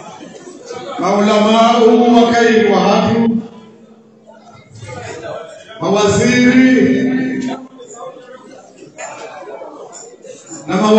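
An elderly man chants in long, drawn-out phrases through a microphone and loudspeaker, echoing in a large hall.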